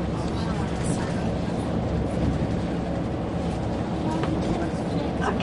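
Wind rushes past the moving car.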